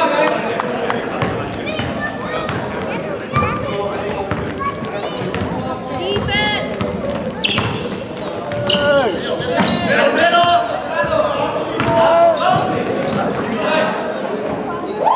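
Young men shout and call out across the court.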